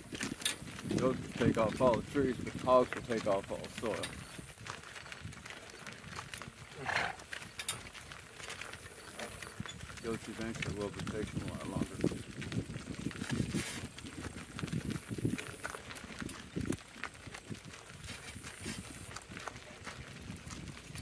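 Hooves clop steadily on a gravel road.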